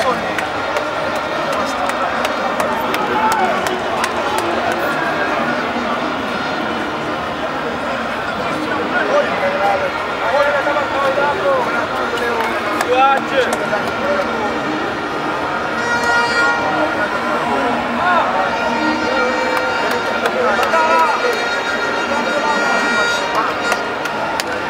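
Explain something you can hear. A crowd of men talk and call out nearby, outdoors.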